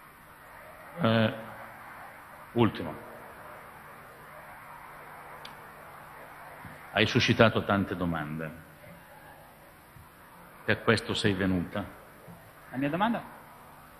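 A man speaks through a microphone in short bursts, in a large room.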